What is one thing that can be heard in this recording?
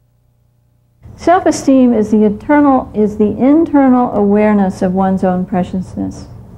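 A woman speaks calmly and clearly through a close microphone.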